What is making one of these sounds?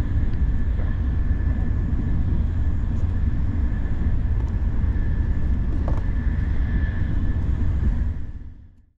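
A faint steady whine hums from the train's motor.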